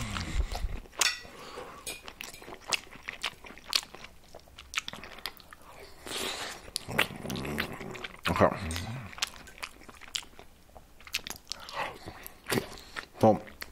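A metal fork scrapes and clicks against a plate.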